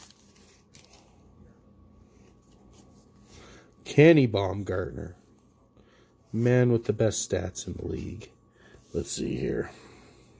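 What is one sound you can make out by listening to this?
Stiff trading cards flick and rustle softly as they are leafed through by hand.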